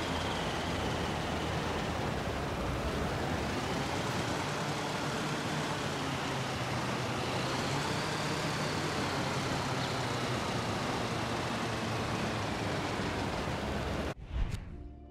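A small aircraft engine drones steadily with wind rushing past.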